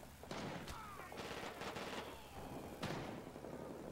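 Gunshots crack in short bursts nearby.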